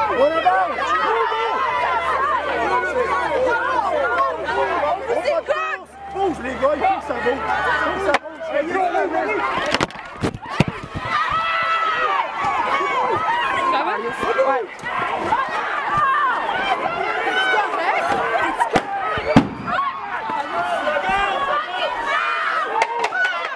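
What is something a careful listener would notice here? A crowd of people shouts and chants loudly outdoors.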